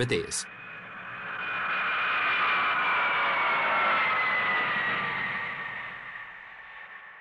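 Jet engines roar loudly as a large plane passes low overhead, with a high whine that slowly falls in pitch.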